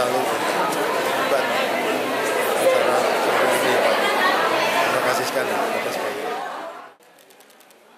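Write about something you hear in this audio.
A crowd chatters loudly in the background.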